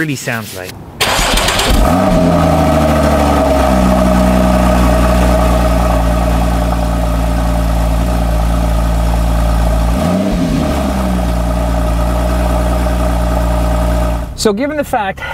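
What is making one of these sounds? A car engine starts with a sudden roar and idles with a deep rumble outdoors.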